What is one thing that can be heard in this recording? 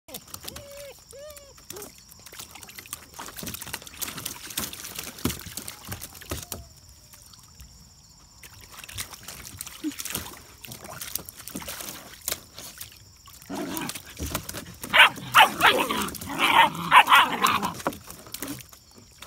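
Puppies splash and paddle in shallow water.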